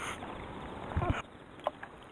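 A small lure plops into the water.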